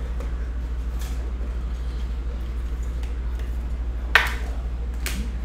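A plastic card holder clicks and scrapes in a hand.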